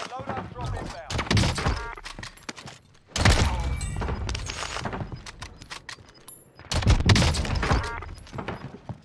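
Loud gunshots boom in sharp bursts.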